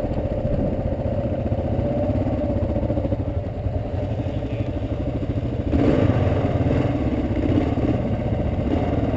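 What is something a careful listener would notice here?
A motorcycle engine putters steadily up close.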